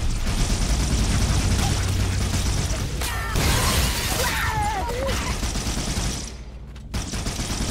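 A weapon fires rapid whooshing energy bolts.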